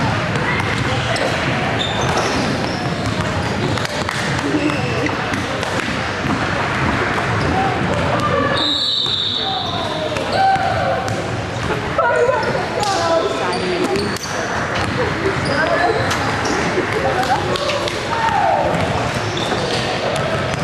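A crowd of people chatters in a large echoing gym.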